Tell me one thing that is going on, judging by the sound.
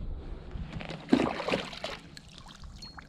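Water splashes and trickles as a cup scoops it up.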